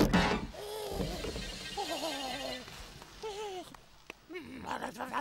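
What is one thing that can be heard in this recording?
A high, squeaky cartoon voice babbles and honks with animation.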